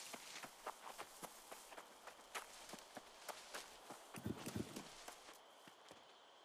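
Footsteps tread on a dirt path.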